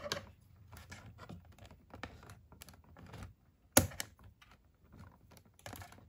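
Scissors snip through cardboard.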